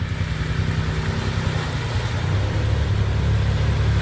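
Water splashes as a vehicle drives through a shallow creek.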